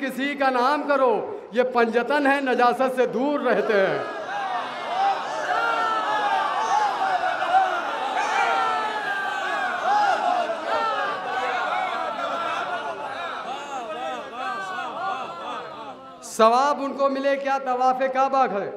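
A young man recites with animation through a microphone and loudspeakers.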